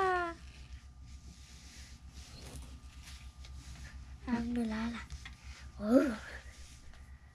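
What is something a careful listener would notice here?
Playing cards slide and rustle softly across a cloth mat.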